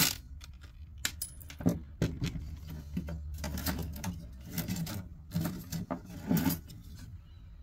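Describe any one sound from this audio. Metal parts clatter and knock as they are pulled apart.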